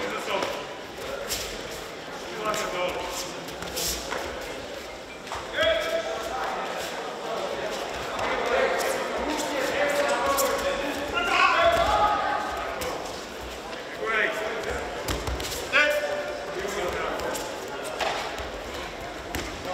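Spectators and coaches shout encouragement in a large echoing hall.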